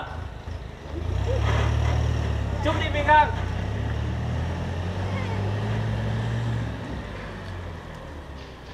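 A truck engine rumbles low as the truck drives away.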